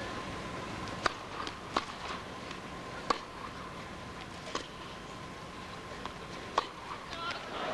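A tennis ball is struck by rackets in a rally, with sharp pops echoing in a large hall.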